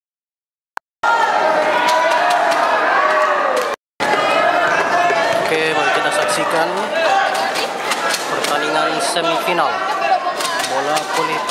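A crowd of young women chatter and shout in an echoing hall.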